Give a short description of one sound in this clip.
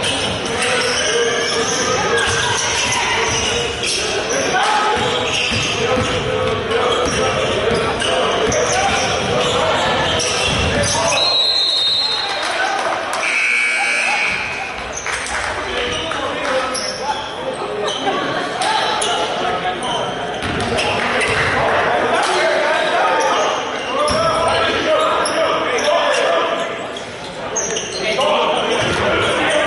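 Spectators and players call out and chatter.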